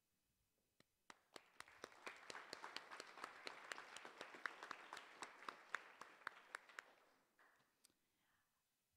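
An audience claps and applauds in a hall.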